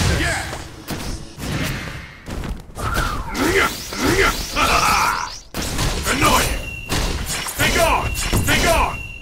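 Magic energy blasts whoosh and crackle.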